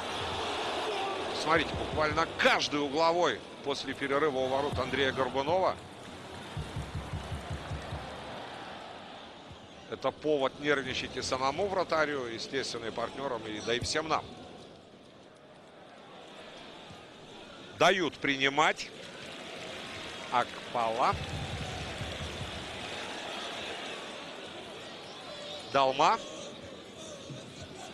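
A large crowd murmurs and chants steadily in a stadium.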